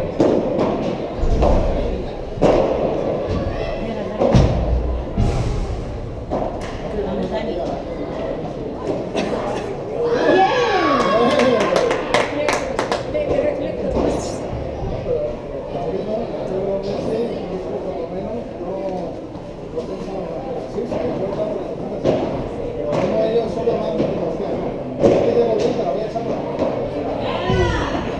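Paddles strike a ball with sharp pops in an echoing hall.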